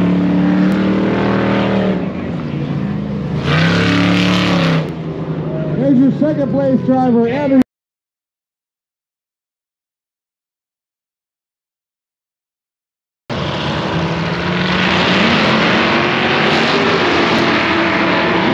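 Small engines of radio-controlled cars buzz and rev up and down nearby.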